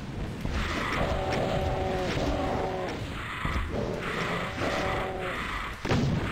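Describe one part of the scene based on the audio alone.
Monsters growl and shriek.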